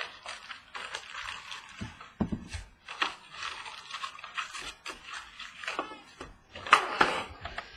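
Plastic card wrappers crinkle and rustle close by.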